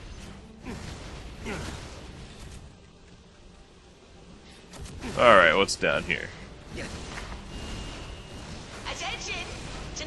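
A dragon breathes fire in roaring bursts.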